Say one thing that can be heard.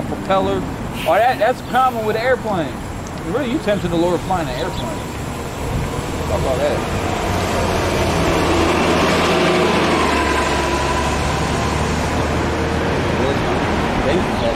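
Cars drive by on a street.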